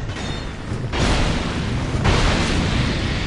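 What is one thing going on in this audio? A fireball whooshes and bursts.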